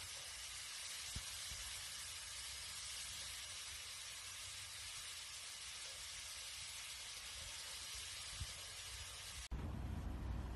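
A bird splashes and flaps its wings in water.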